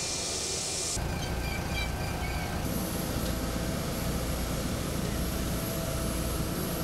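A jet engine whines loudly nearby.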